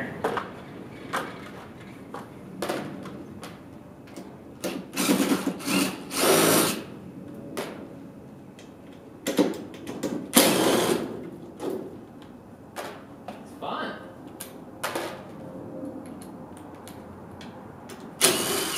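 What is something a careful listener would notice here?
A worker's tool clatters and knocks against a metal panel in short bursts.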